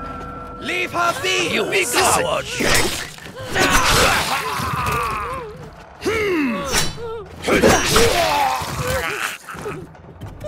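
Men shout and grunt while fighting.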